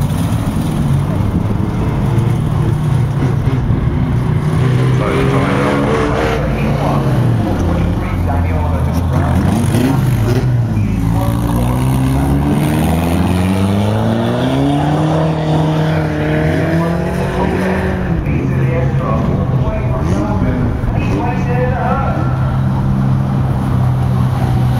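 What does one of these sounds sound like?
Car engines roar and rev as cars race around a track outdoors.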